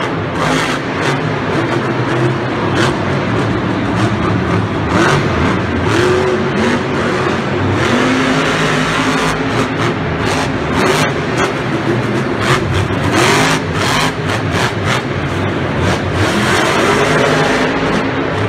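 A monster truck engine roars and revs loudly.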